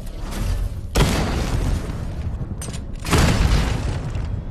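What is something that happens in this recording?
Metal clangs and thuds loudly.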